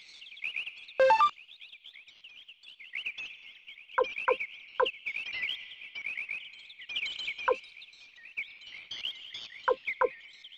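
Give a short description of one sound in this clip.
Short electronic blips sound as menu choices are made.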